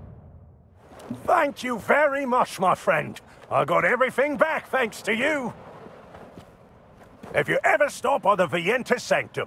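A man speaks warmly and cheerfully, close up.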